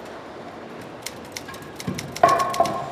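A typewriter clacks.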